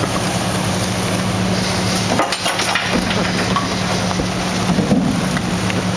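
Trash and boxes thump and rustle as a worker tosses them into a garbage truck.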